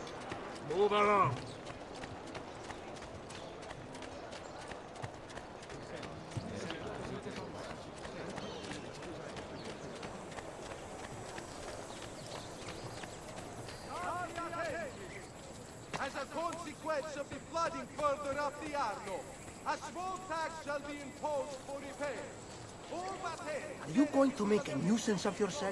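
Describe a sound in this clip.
Footsteps run quickly over stone and earth.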